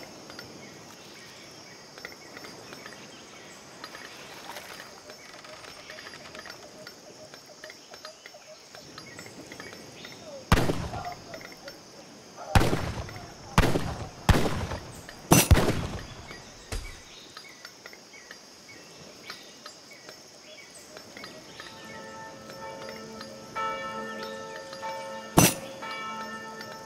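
Waves lap gently on a shore.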